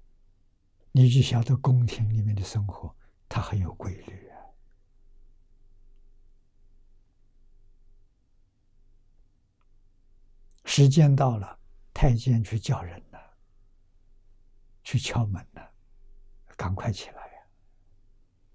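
An elderly man speaks calmly and warmly into a close microphone, with long pauses.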